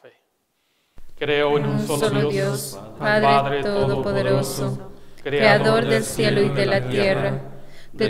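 A man chants into a microphone in an echoing hall.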